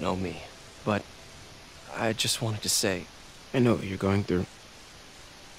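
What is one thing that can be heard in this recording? A young man speaks softly and hesitantly, close by.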